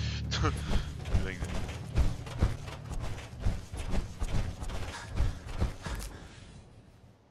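Heavy metal-armoured footsteps thud on the ground at a steady walking pace.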